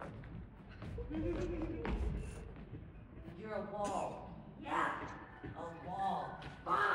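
A man speaks with animation in a large echoing hall.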